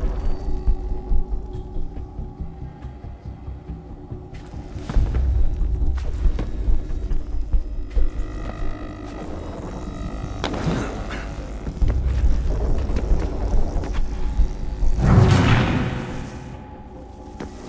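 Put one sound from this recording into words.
Footsteps thud and scrape as a figure climbs and leaps across ledges.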